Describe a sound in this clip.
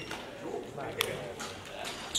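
A racket smacks a shuttlecock.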